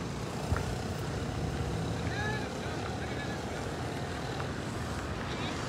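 A van drives past close by, its engine rumbling.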